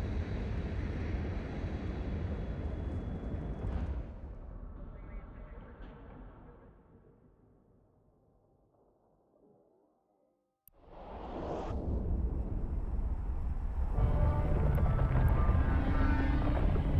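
A spaceship's engines rumble deeply, fade almost to silence, then surge back loudly.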